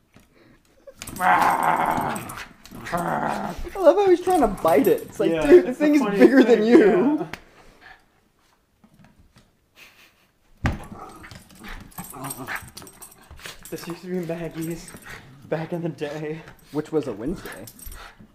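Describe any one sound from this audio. A small dog growls and grumbles as it plays.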